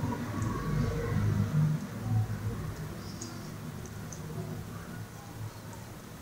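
A spoon scrapes softly, spreading a filling on bread.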